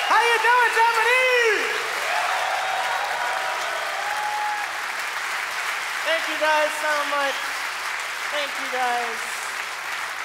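A large audience claps and cheers in a big hall.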